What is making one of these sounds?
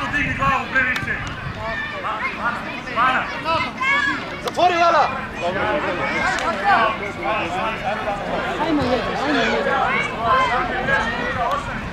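Children shout and cheer loudly outdoors.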